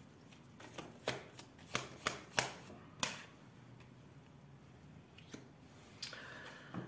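Cards tap and slide on a wooden table.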